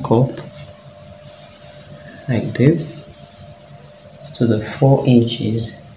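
Cloth rustles as it is folded and smoothed.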